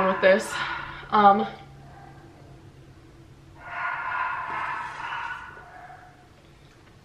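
A young woman gulps down a drink.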